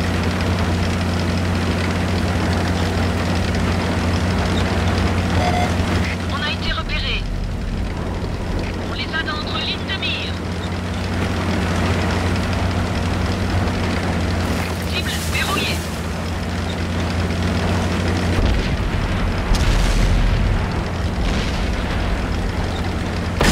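A heavy tank engine rumbles steadily as the tank drives along.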